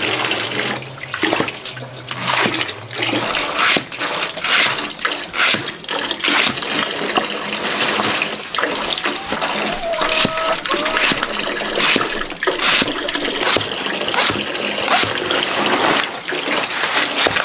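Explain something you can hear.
A knife chops through crisp stalks on a wooden board with sharp, steady knocks.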